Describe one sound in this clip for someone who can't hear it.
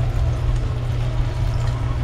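Water pours into a pot.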